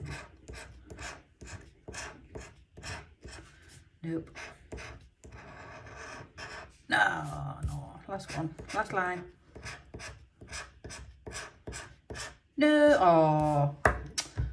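A coin scratches rapidly across a scratch card, close up.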